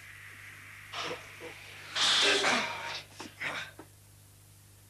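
A man falls backwards onto the floor with a thud.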